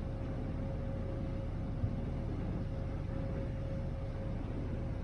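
A ferry's engine rumbles steadily.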